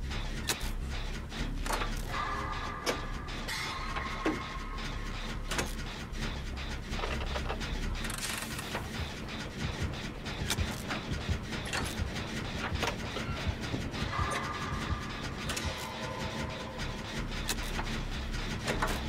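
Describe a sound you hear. Metal parts click and clank as an engine is worked on by hand.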